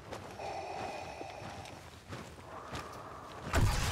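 Slow footsteps crunch on gravelly ground.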